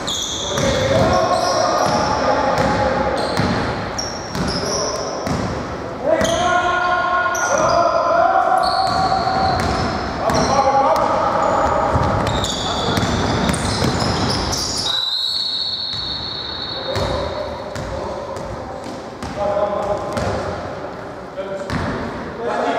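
Young men shout to each other in an echoing hall.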